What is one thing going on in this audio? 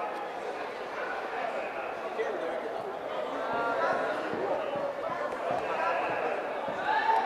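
A crowd of men and women chatters in a large echoing hall.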